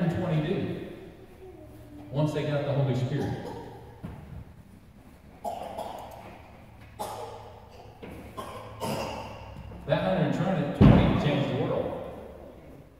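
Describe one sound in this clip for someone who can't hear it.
An older man speaks with animation through a microphone and loudspeakers in an echoing room.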